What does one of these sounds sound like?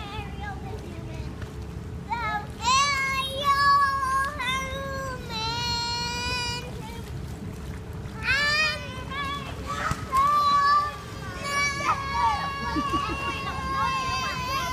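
Water splashes gently as children swim.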